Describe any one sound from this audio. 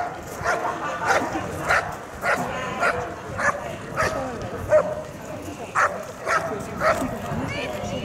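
A large dog barks loudly and repeatedly outdoors.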